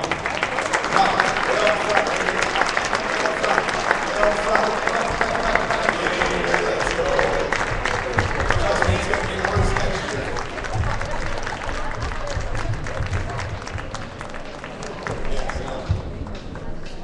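A crowd applauds and claps in a large echoing hall.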